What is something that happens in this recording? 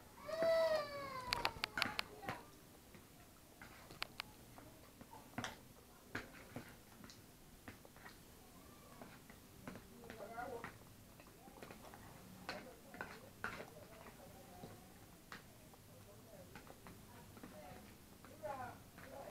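A woman makes short voiced sounds while eating.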